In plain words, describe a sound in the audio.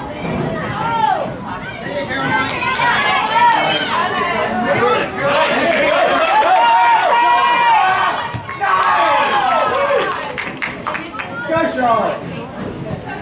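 Spectators nearby cheer and shout loudly outdoors.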